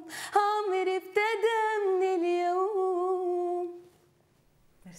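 A young woman sings a sustained melody.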